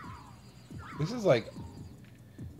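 A small creature gives a short, high warbling cry.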